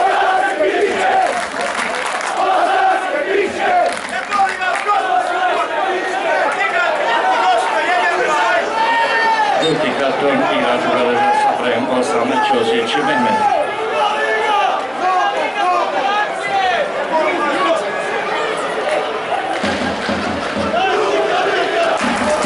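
Men shout to each other far off across an open pitch.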